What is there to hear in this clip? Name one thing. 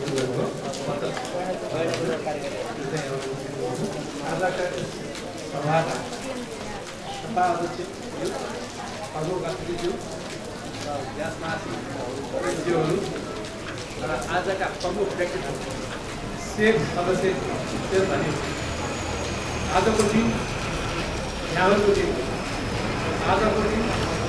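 A middle-aged man speaks steadily into a microphone, heard through loudspeakers in an echoing room.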